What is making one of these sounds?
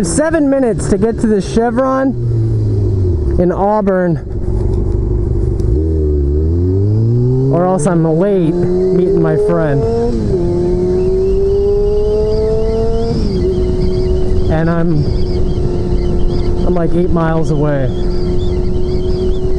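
A motorcycle engine revs up and down through the gears.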